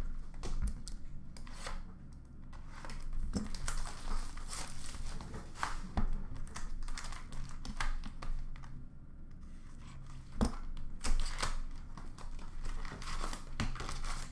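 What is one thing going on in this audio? Cards rustle and slide as hands shuffle through them.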